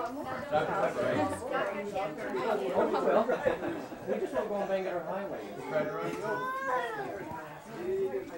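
A toddler babbles.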